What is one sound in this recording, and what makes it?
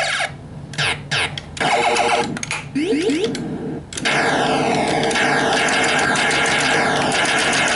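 An arcade game beeps, zaps and explodes with electronic sound effects.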